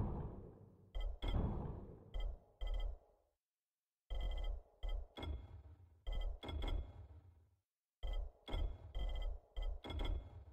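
Menu clicks and soft ticks sound in quick bursts.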